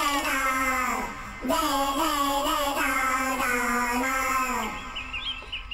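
A man chants in a long, drawn-out voice.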